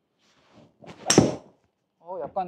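A golf club strikes a ball sharply off a hitting mat.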